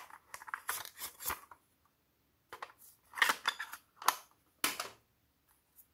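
Plastic cases clatter and knock as they are handled.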